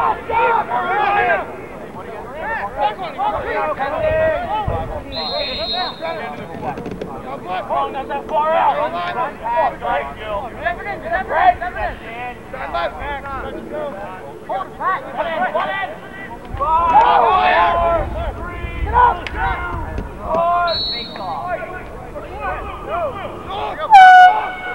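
Several young men talk and call out outdoors nearby.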